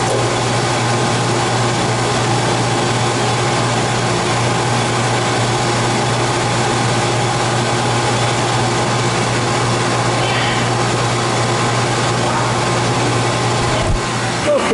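A gas torch flame hisses and roars steadily.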